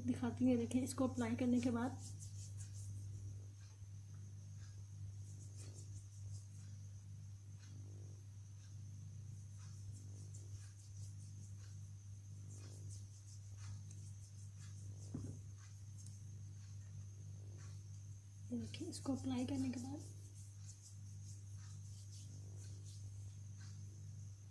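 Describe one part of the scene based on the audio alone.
Hands rub lotion together with soft, wet swishing.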